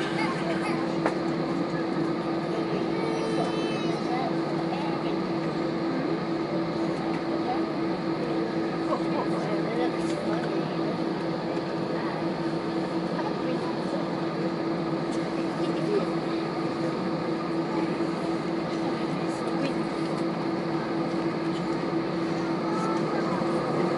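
An Airbus A320's jet engines hum steadily, heard from inside the cabin as the airliner taxis.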